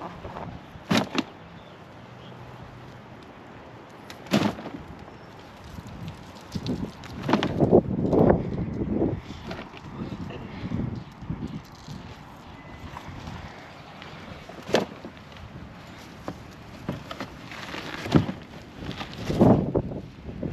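Clumps of dirt thud into a hollow plastic bin.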